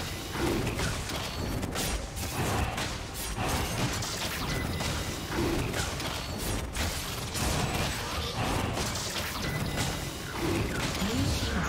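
Game spells whoosh and crackle during a battle with a dragon.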